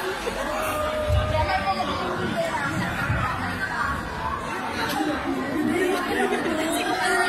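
A crowd of adults chatters in the background.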